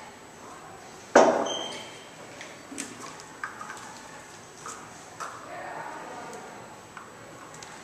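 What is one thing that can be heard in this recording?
Liquid pours from a bottle into small cups.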